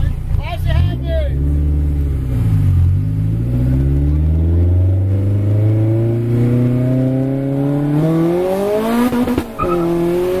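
A car engine revs up steadily as the car accelerates, then drops briefly before climbing again.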